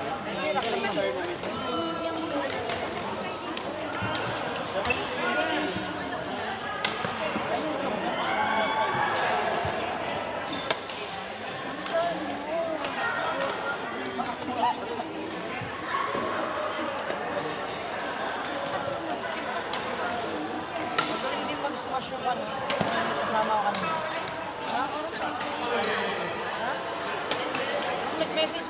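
Many people chatter and call out across the echoing hall.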